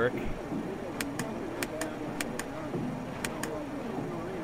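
Cockpit switches click several times in quick succession.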